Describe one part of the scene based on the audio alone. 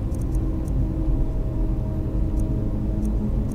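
A soft menu click sounds as a selection moves.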